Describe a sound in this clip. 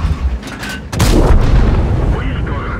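A shell explodes nearby with a heavy blast.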